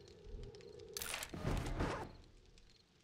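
A wooden cupboard door creaks open and bangs.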